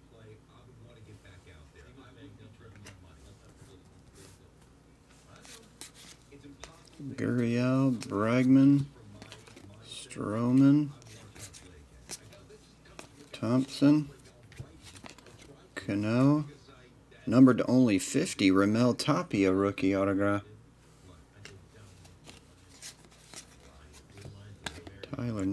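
Trading cards slide and rustle against each other as they are flipped through.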